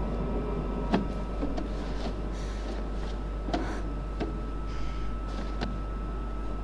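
Footsteps tread slowly on a hard floor.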